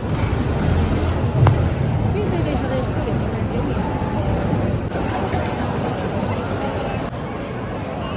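A crowd murmurs and chatters in a large echoing arcade.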